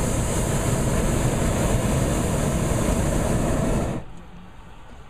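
A hot air balloon's propane burner roars.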